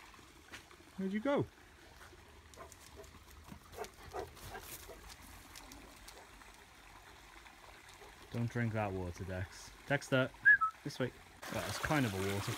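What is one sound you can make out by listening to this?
A dog yelps and whines.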